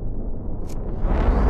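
A jet engine roars closer, growing louder.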